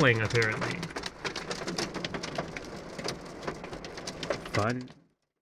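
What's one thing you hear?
Raindrops patter on a car windscreen.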